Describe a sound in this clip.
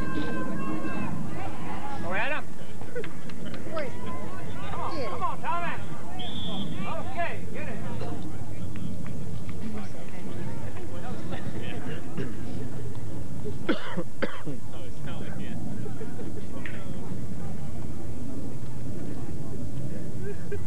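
A crowd of people chatters and murmurs outdoors nearby.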